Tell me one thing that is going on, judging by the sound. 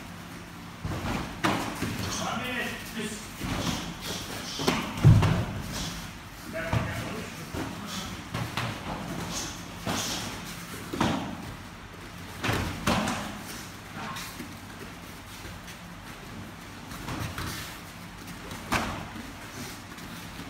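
Bare feet thump and shuffle on a foam mat floor.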